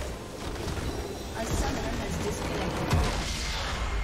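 A crystal structure shatters with a crash.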